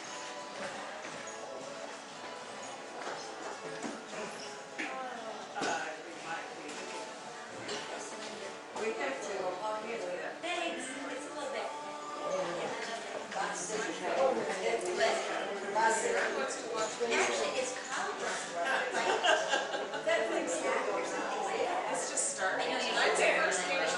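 A group of string instruments plays together in a large echoing hall.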